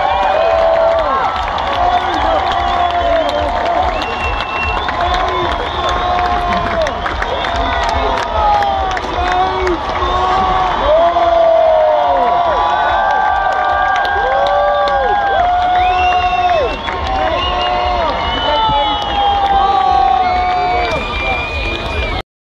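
Loud live music booms from a stage.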